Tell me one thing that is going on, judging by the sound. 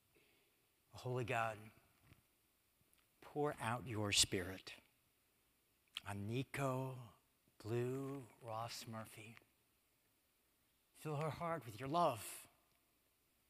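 A man speaks calmly and slowly through a microphone in a large echoing hall.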